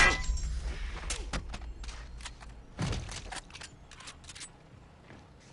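Short muffled thuds and scuffles of a close struggle come in quick succession.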